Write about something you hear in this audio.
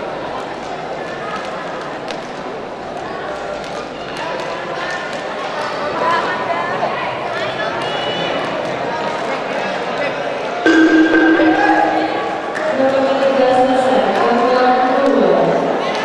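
A crowd murmurs and chatters in a large echoing hall.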